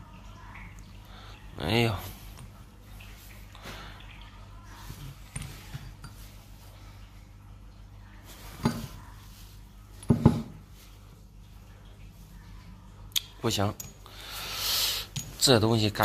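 Metal pieces clink together as they are handled.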